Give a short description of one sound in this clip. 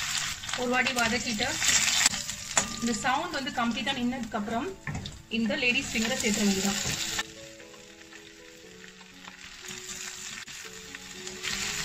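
A metal spatula scrapes and stirs in a pan.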